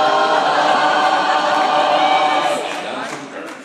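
A man speaks loudly through a loudspeaker in a large hall.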